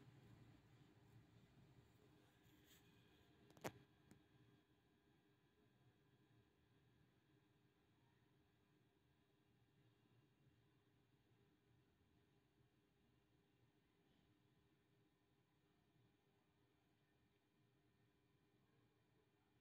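Fabric rustles softly as hands fold and handle it.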